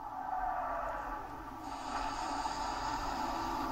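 Water erupts in loud splashes.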